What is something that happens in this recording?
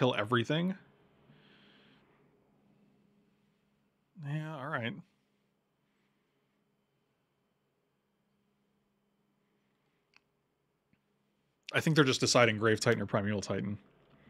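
A middle-aged man speaks casually into a close microphone, in short bursts with pauses.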